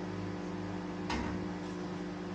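A metal pot clinks onto a stove.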